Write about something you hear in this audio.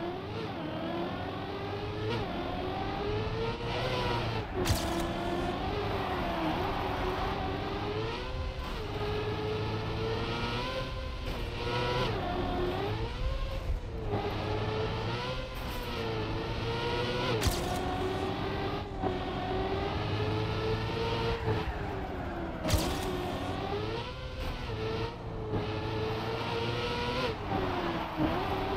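A racing car engine whines at high revs, rising and falling as it shifts gears.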